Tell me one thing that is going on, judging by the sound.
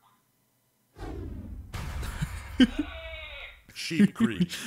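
A deep, rumbling magical whoosh swells and fades.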